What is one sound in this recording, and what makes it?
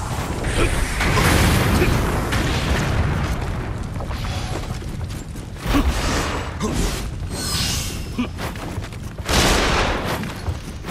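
Heavy blows and explosions boom in bursts.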